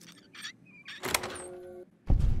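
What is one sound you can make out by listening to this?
A lock snaps open with a loud click.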